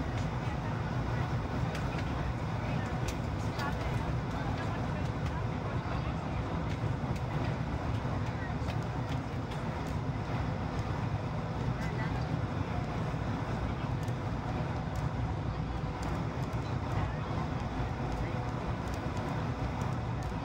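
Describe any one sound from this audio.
Jet engines roar steadily inside an airliner cabin.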